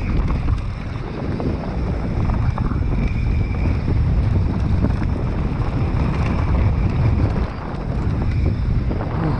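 A bicycle rattles over bumps.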